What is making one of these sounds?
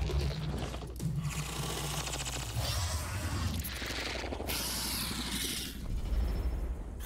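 A large creature snarls and hisses.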